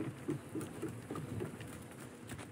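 Footsteps thud quickly on wooden steps.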